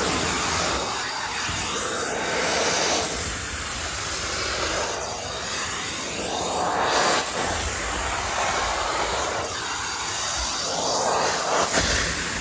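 A vacuum motor roars steadily.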